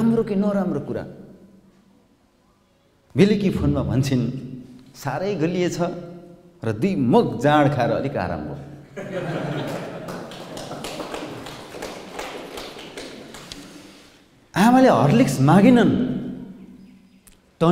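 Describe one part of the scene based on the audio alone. A young man speaks with animation through a microphone and loudspeakers.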